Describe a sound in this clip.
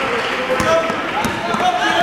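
A basketball bounces on a gym floor.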